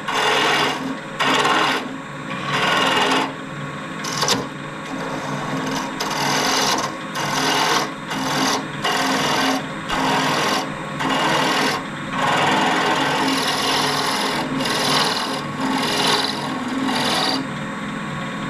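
A chisel scrapes and hisses against spinning wood in repeated bursts.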